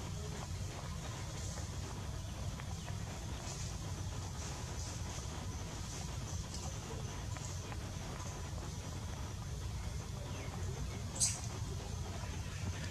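A monkey chews and smacks its lips up close.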